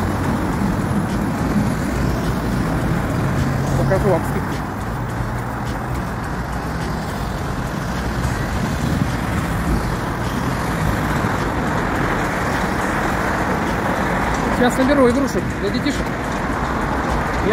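A middle-aged man talks casually close to the microphone.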